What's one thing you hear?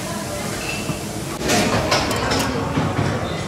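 A metal lid clanks as it is lifted off a pot.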